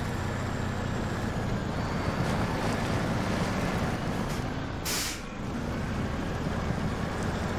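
A heavy truck engine rumbles and strains at low speed.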